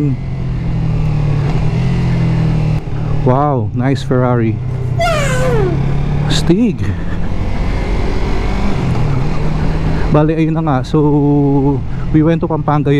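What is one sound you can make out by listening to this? A motorcycle engine hums close by and revs up and down through gear changes.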